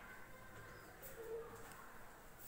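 A cloth rubs across a whiteboard.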